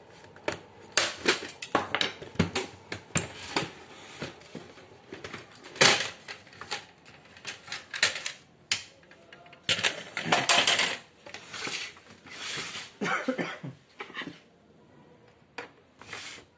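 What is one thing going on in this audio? Plastic parts of a printer clack and knock as they are handled.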